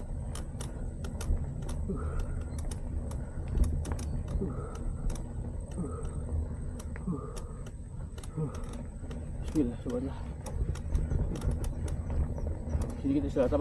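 Loose parts of a bicycle rattle and click over bumps.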